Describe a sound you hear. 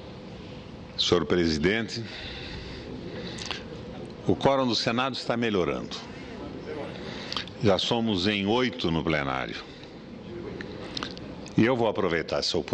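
An elderly man speaks slowly and formally into a microphone, in bursts with pauses, in a large echoing hall.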